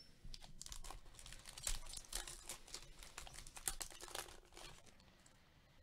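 A foil wrapper crinkles and tears.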